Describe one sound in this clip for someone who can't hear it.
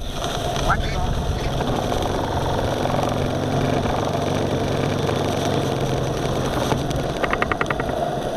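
Water rushes and splashes against a boat's hull.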